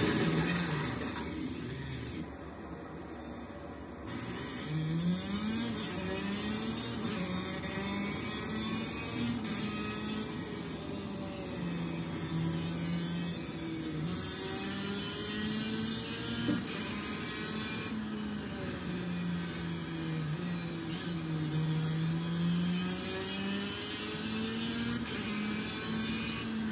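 A racing car engine revs and roars through gear changes from loudspeakers.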